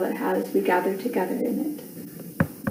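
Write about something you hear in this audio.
A middle-aged woman speaks calmly, heard through an online call.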